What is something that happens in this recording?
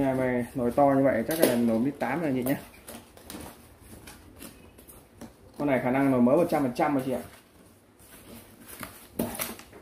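Cardboard flaps scrape and rustle as they are pulled open.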